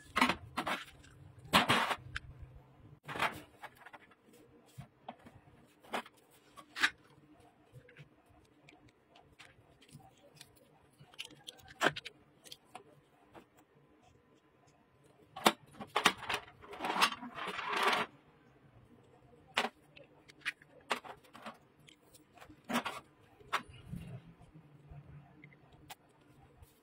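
Metal pieces clink and knock against a hard surface, now and then.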